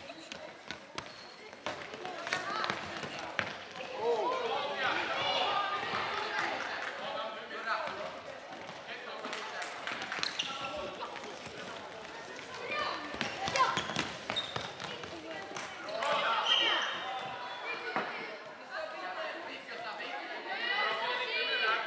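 Sticks click against a ball and the floor in a large echoing hall.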